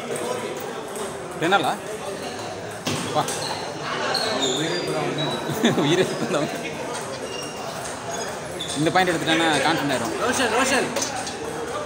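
A ping-pong ball clicks back and forth between paddles and a table.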